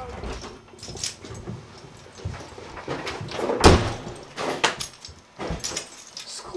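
Footsteps thud on a floor indoors.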